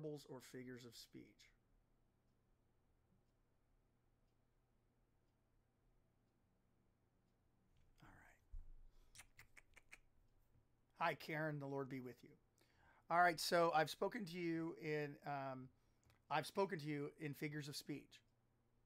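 A man speaks calmly and close to a microphone, with pauses.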